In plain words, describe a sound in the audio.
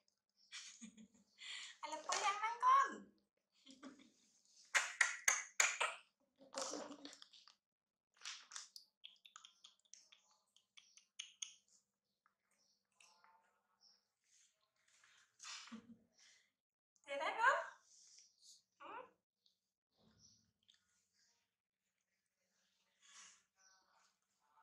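A baby monkey squeals and shrieks in high, wavering cries.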